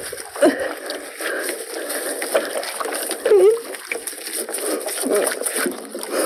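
Gloved hands squish and rub a wet octopus.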